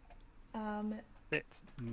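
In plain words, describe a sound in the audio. A young woman speaks briefly and quietly into a close microphone.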